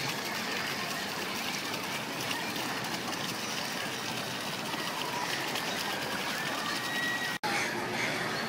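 Water from a small fountain splashes steadily into a basin.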